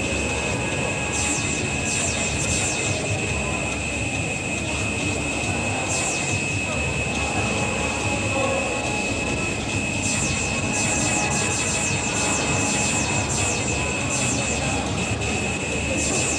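Electronic arcade game sound effects beep and zap over loudspeakers.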